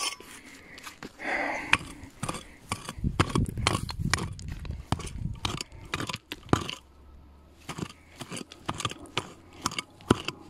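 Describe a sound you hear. A hand hoe chops and scrapes into dry, stony soil.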